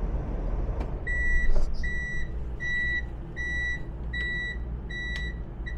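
A dashboard warning chime beeps in a steady, even rhythm.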